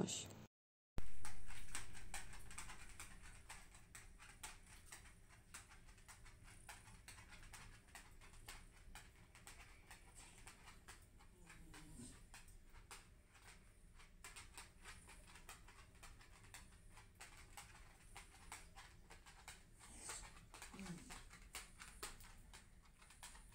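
A dog's claws click and tap on a hard floor as it walks about.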